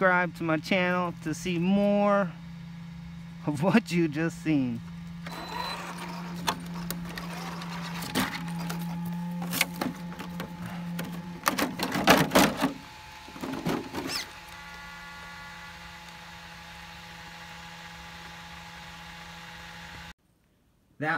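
A small electric motor whines steadily.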